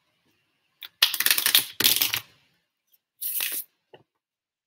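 Cards shuffle and rustle close to a microphone.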